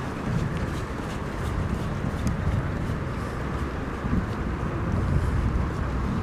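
Running footsteps pound on a path.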